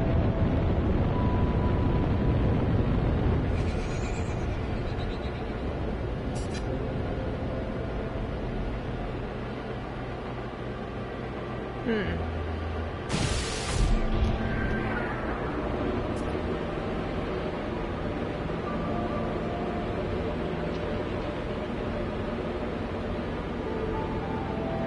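A video game spaceship engine hums in flight.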